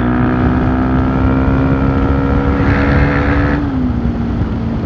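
A truck roars past close by.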